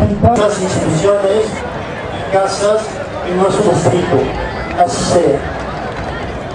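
A middle-aged man speaks into a microphone over loudspeakers, outdoors with an echo.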